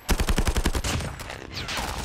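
Rapid gunfire rattles in a quick burst.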